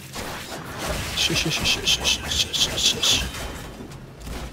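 Gunfire and game combat sounds crackle in rapid bursts.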